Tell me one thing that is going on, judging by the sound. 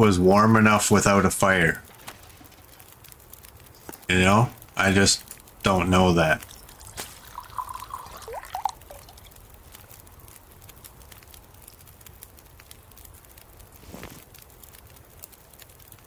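A campfire crackles softly.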